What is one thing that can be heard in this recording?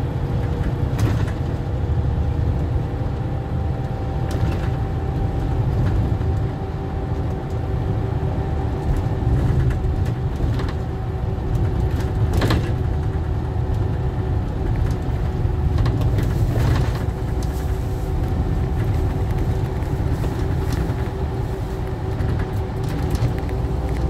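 A bus's cabin rattles and knocks now and then.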